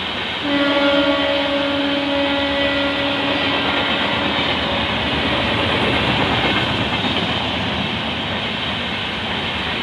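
Passenger train wheels clatter over rail joints as the train pulls away.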